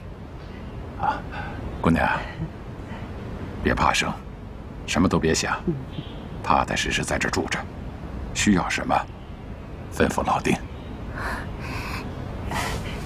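An elderly man speaks warmly nearby.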